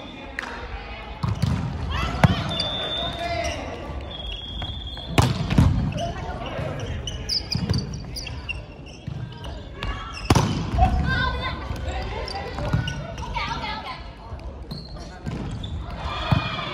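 Young men and women shout and call out to each other during play.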